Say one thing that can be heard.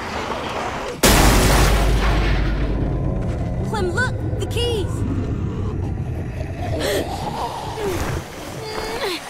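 A car engine starts with a loud burst and rumbles roughly.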